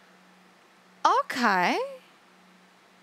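A young woman exclaims brightly into a microphone, close by.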